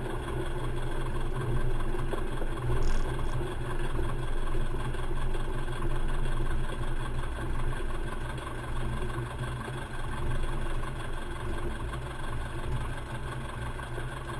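A small plane's propeller engine drones loudly and steadily.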